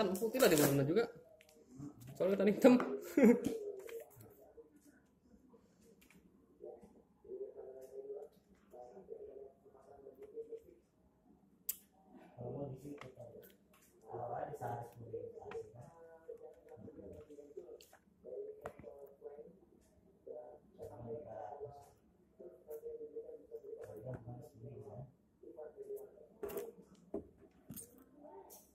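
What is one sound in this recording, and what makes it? Paper and plastic wrap rustle and crinkle as they are handled.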